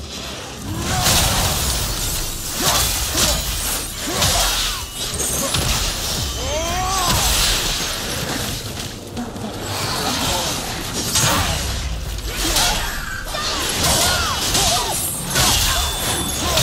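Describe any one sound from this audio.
Heavy weapon blows strike and clash in a fierce fight.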